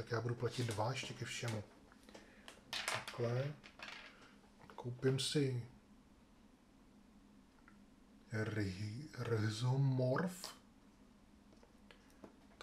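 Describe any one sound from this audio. Small plastic game pieces click softly on a table.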